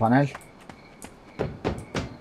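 Footsteps clatter on wooden stairs.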